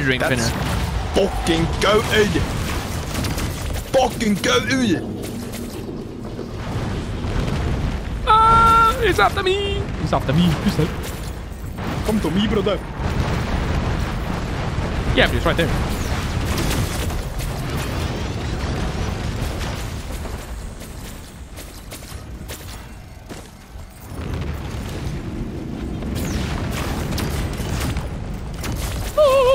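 Game weapons fire and explode in quick bursts.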